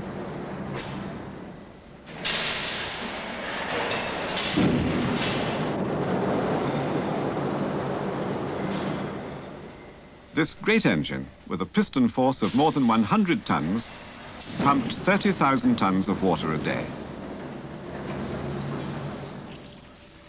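A large machine hums steadily.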